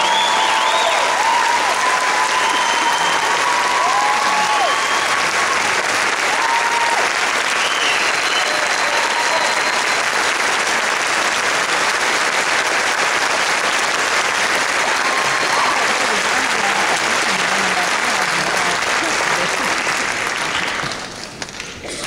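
A large audience applauds and cheers in a large hall.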